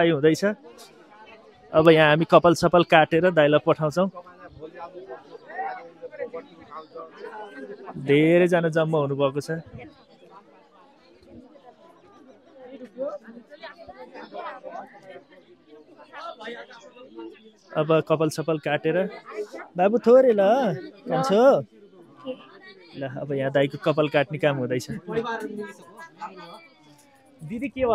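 A crowd of men and women chatters in the background.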